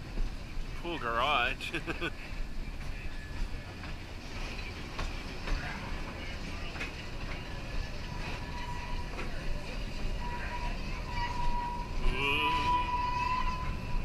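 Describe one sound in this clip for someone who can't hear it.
A person on the train calls out nearby.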